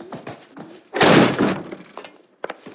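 A door is kicked open with a loud bang.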